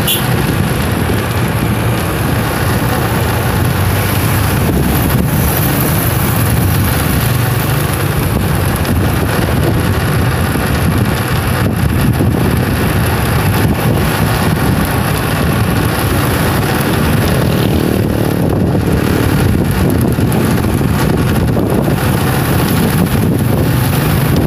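Wind rushes while riding at speed outdoors.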